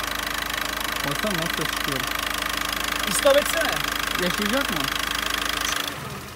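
A car engine idles steadily with a rapid ticking.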